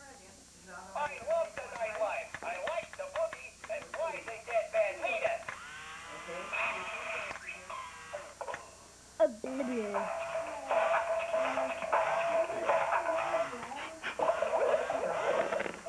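A toy robot frog plays warbling, chirping electronic sounds.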